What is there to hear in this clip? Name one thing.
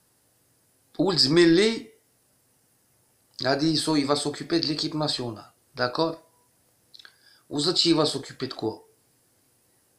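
A middle-aged man speaks calmly and close to a microphone, in short bursts with pauses.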